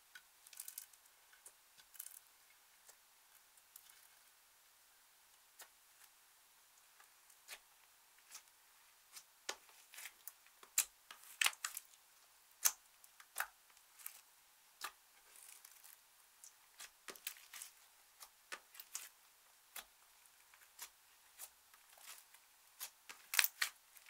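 Sticky slime squelches and crackles as fingers squeeze and poke it, close up.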